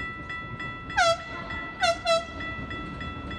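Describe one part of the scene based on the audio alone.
A train horn blares twice from an approaching locomotive.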